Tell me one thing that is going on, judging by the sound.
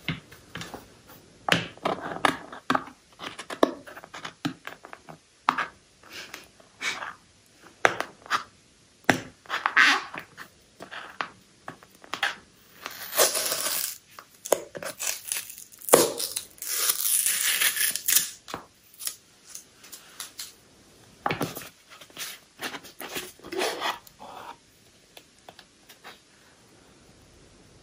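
A cardboard box rustles and scrapes in a man's hands.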